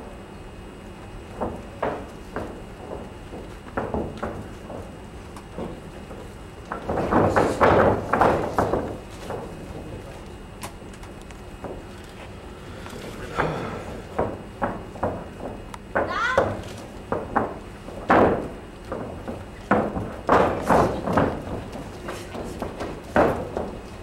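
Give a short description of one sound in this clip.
A crowd shouts and cheers in a large hall.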